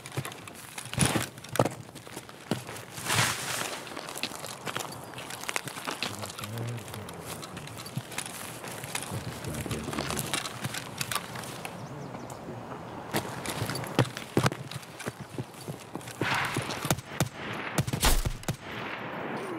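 Gunshots crack loudly nearby.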